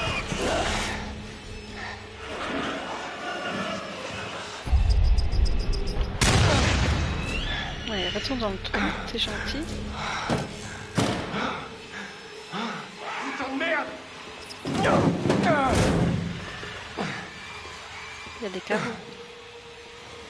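A young man calls out tensely nearby.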